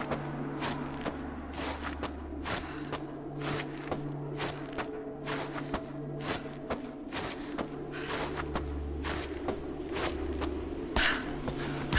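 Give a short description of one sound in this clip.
Hands grip and slide along a rope in quick, rhythmic pulls.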